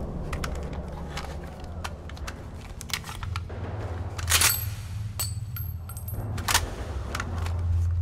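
A pistol clicks and clacks as it is handled and loaded.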